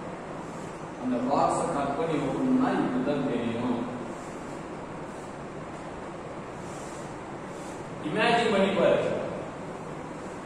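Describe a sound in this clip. A young man speaks briefly and calmly.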